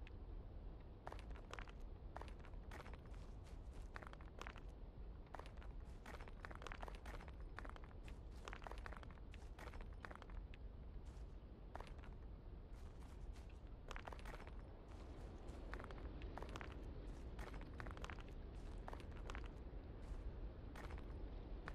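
A sledgehammer strikes stones again and again with sharp cracks.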